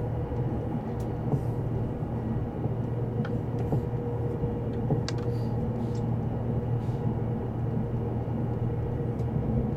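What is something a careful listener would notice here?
Train wheels click over rail joints now and then.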